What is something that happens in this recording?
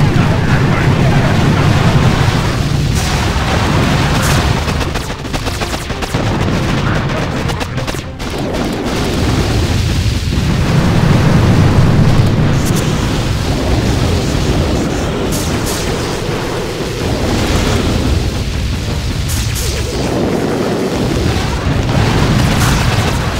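Gunfire and explosions crackle and boom in a battle.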